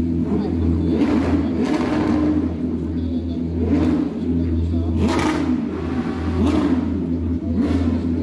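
Racing car engines roar past loudly in bursts.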